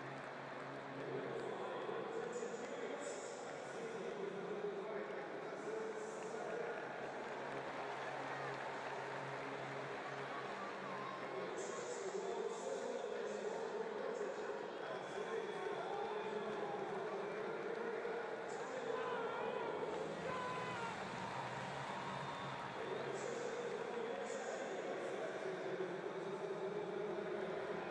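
A large stadium crowd murmurs and cheers in a wide open space.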